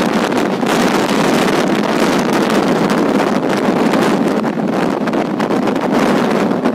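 A train rattles and clatters steadily along the tracks.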